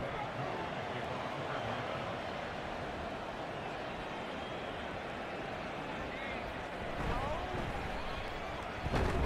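A large crowd cheers with a steady roar.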